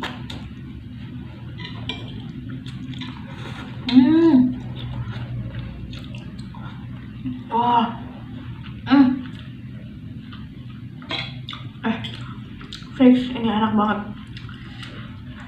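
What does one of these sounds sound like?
A young woman slurps noodles loudly and close by.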